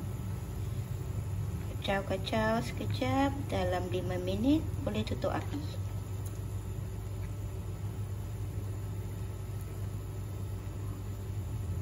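A plastic spoon stirs through soup in a pot.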